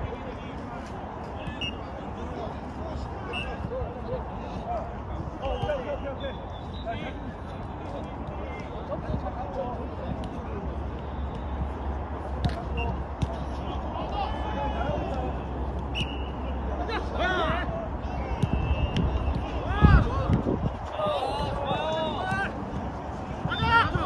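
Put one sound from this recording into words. A ball is kicked with dull thumps outdoors.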